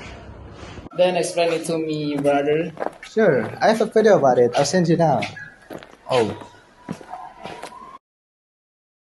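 A young man speaks casually up close.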